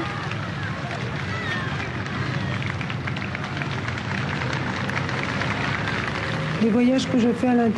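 Motorcycle engines rumble as a procession rides past.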